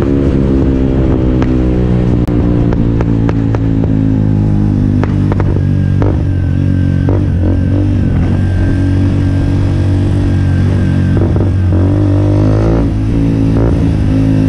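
A motorcycle engine rumbles steadily while riding, its pitch rising and falling with the throttle.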